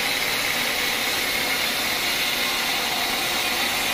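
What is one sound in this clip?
A band saw cuts through a wooden beam with a rasping hiss.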